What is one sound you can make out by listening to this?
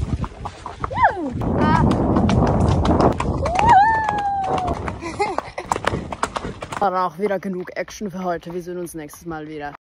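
A horse's hooves thud steadily on a dirt path.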